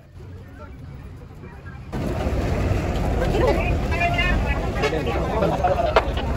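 Footsteps shuffle on a hard walkway.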